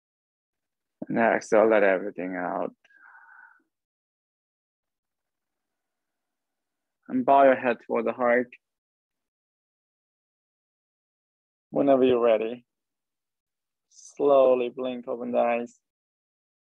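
A man speaks calmly in short phrases over an online call, with long pauses between them.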